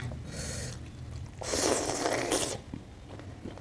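A woman chews food loudly and wetly close to a microphone.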